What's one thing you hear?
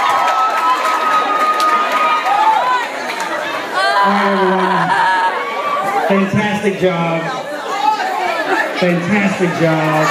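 A large crowd of young people cheers and shouts excitedly.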